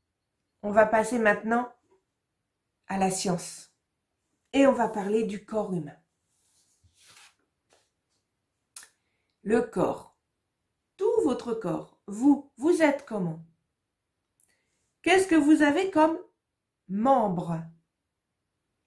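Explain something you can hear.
A middle-aged woman speaks close to the microphone, clearly and with animation, in short phrases with pauses.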